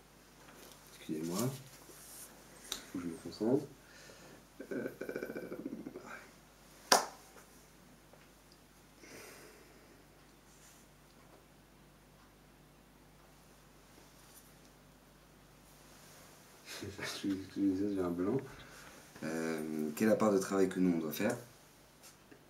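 A young man sings softly in short phrases, close by.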